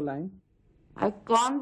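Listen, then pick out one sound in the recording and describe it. A middle-aged woman speaks on a phone.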